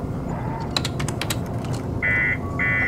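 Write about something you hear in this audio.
Keys click rapidly on a keyboard.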